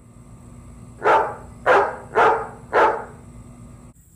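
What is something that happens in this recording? A dog barks four times close by.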